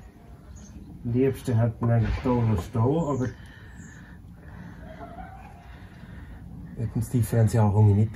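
A man talks calmly, close to the microphone.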